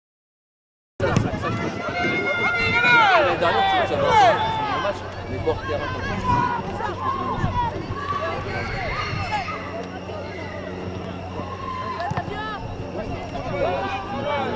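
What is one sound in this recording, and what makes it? Young boys shout to each other across an open field outdoors.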